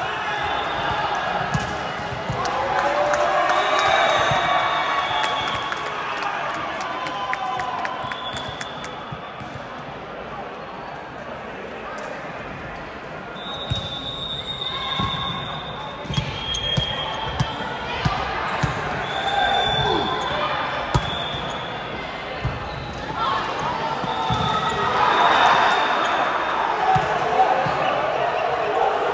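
A volleyball thuds against hands and arms.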